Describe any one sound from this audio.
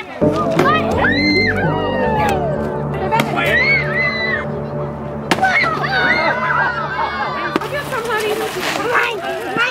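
Young children shout and squeal excitedly outdoors.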